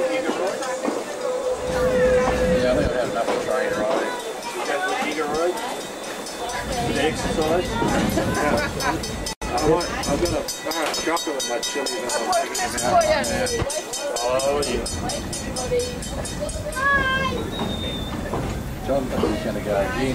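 A train rumbles and clatters slowly along the tracks.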